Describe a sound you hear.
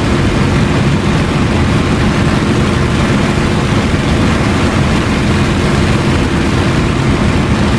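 Wind rushes past an aircraft canopy.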